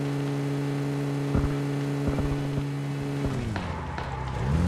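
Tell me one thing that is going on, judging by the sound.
A car engine hums steadily, then winds down.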